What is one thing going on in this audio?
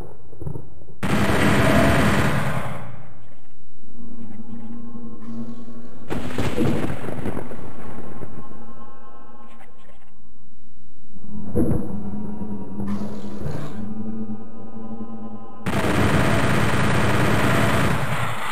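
A fireball whooshes and explodes.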